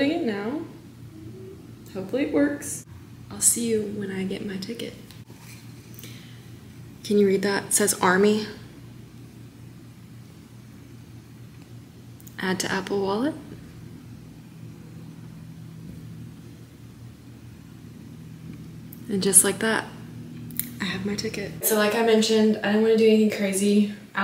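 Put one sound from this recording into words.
A young woman talks close up, in a calm and friendly voice.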